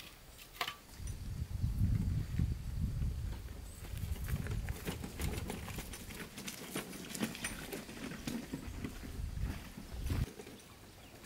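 A wheelbarrow rumbles over stony ground.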